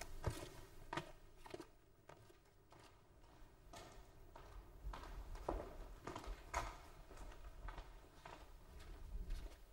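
Footsteps cross a hard floor.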